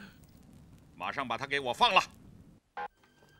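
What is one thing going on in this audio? A middle-aged man speaks menacingly, close by.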